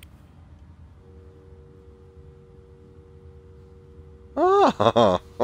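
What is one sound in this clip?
A telephone handset gives a steady tone.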